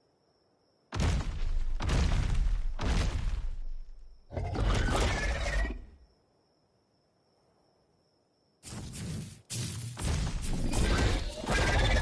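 A large beast growls and roars loudly.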